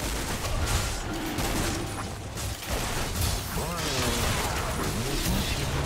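Fantasy battle sound effects clash and crackle.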